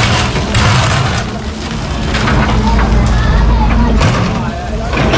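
Concrete rubble crashes and scrapes as an excavator bucket breaks a wall.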